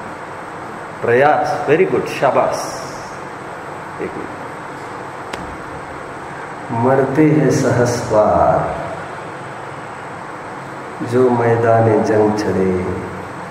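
A man speaks calmly and clearly in short phrases, close by.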